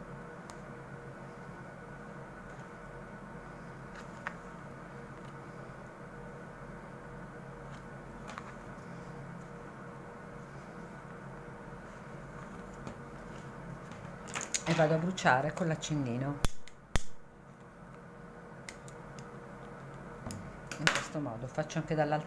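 Yarn rustles softly as it is pulled through holes in a stiff board.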